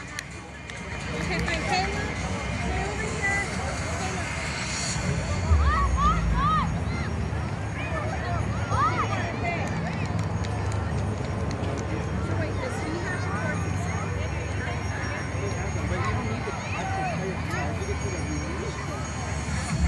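Children shout and call out at a distance outdoors.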